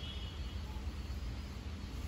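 A woman rubs her palms together.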